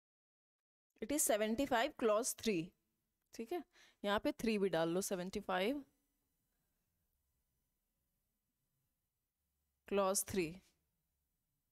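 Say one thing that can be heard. A young woman speaks calmly and clearly into a close microphone.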